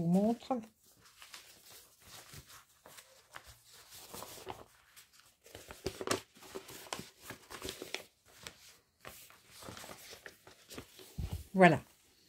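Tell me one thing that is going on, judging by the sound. Paper pages rustle and flap as they are turned and unfolded.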